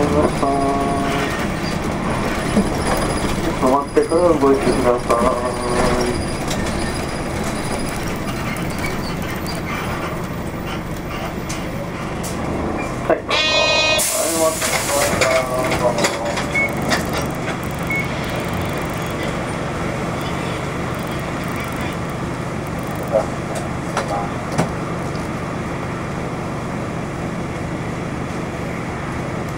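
An engine hums steadily from inside a moving vehicle.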